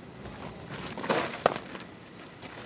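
Feet scuff and crunch on gravel during a lunge.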